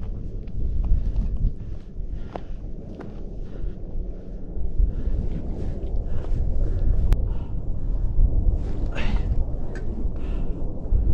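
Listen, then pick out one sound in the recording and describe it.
Boots scrape and crunch on rock.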